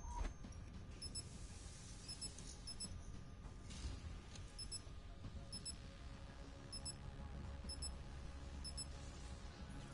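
Short high electronic beeps count down at a steady pace, about once a second.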